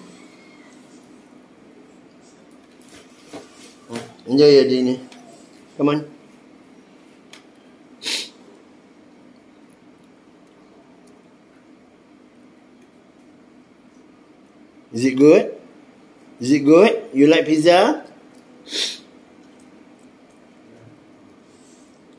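Two monkeys chew and munch on food.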